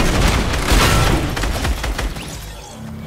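Rapid gunshots crack loudly, then stop.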